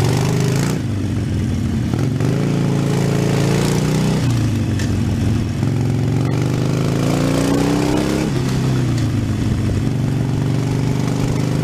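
A motorcycle engine rumbles steadily and rises and falls in pitch as it speeds up and shifts gears.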